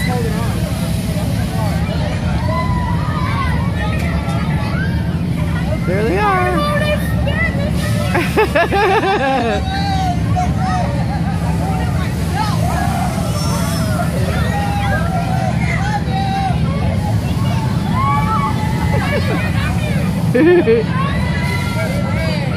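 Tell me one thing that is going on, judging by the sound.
A fairground ride whirls and rumbles steadily.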